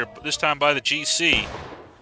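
Muskets fire in a volley.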